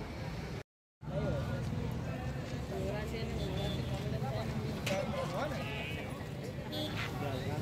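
Men talk and murmur nearby in a busy crowd.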